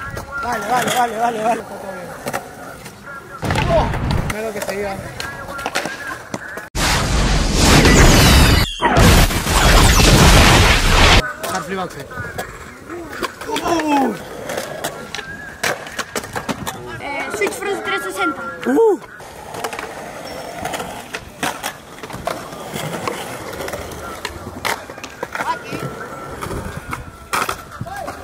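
Skateboard wheels roll and clack on concrete.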